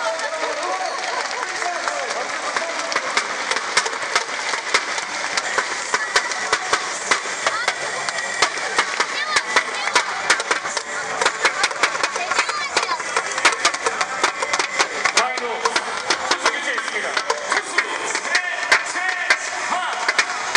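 Fans clap and bang noisemakers in quick rhythm.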